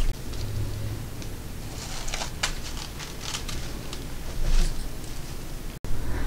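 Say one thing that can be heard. A plastic mesh cover rustles as it is set down.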